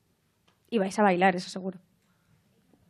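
A young woman speaks briefly into a close microphone, with a lively voice.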